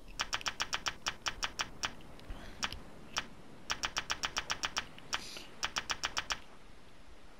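Quick menu ticks click in rapid bursts.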